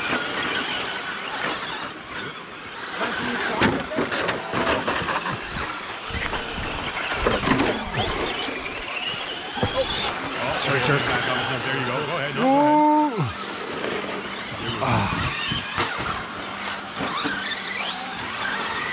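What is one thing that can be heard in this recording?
Small electric motors whine as remote-control cars race over dirt.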